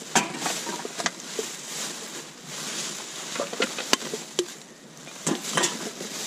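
Plastic bags rustle and crinkle as gloved hands dig through rubbish.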